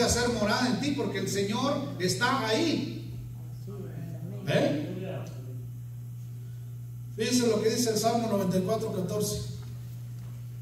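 A middle-aged man speaks with animation through a microphone in a large echoing hall.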